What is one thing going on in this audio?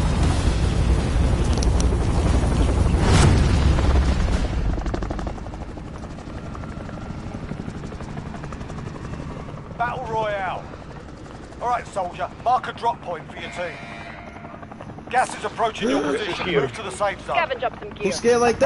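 Helicopter rotors thump and roar loudly, then fade to a steady hum.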